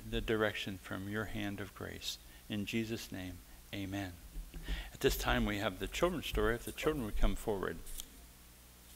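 An elderly man speaks calmly into a microphone in an echoing room.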